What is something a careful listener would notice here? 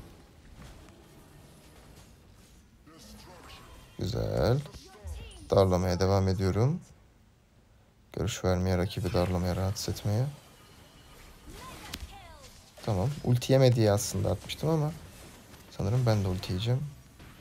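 Magic spells crackle and whoosh in a fast fight.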